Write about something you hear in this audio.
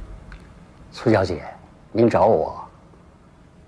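A middle-aged man speaks calmly from across a room.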